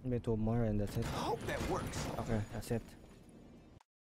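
A magical block shatters with a bright crackling burst.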